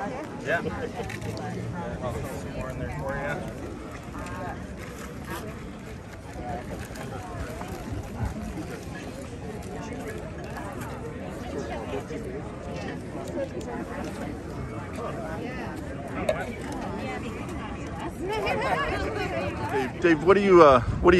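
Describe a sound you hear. A crowd murmurs in the background outdoors.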